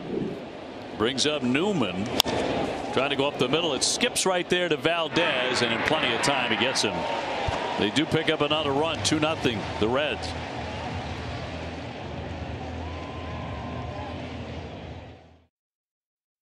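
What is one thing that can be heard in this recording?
A large stadium crowd cheers loudly.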